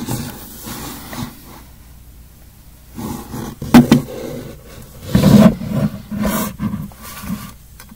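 Soft fur rustles close by.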